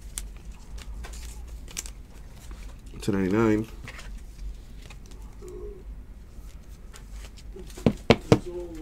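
Plastic card sleeves rustle and crinkle between fingers.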